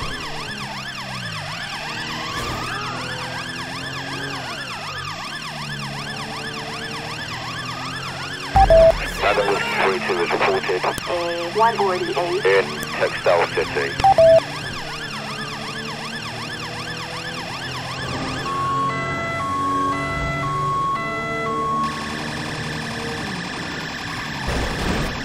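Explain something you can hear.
A police siren wails loudly, rising and falling.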